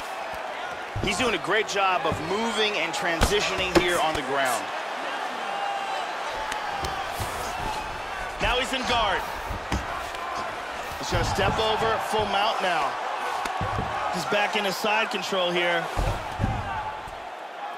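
Heavy punches thud against a body again and again.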